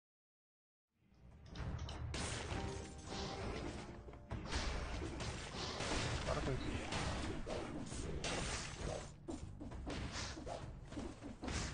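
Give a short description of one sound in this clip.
Swords clash and blasts burst in quick succession.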